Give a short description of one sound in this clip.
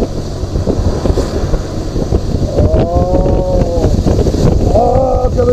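Wind roars steadily past a moving motorcycle.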